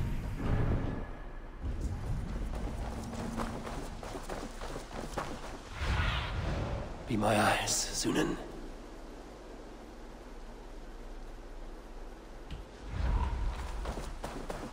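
Footsteps crunch over dry leaves and dirt.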